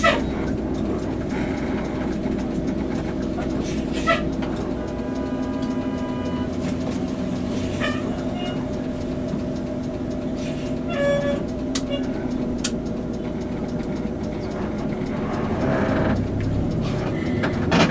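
A bus engine rumbles steadily from inside the cab.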